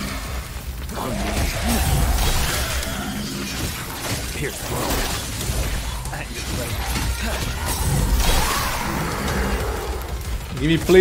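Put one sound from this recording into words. Sword slashes and blows clash rapidly in a video game fight.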